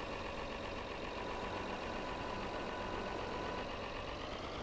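A hydraulic loader whines as it lifts.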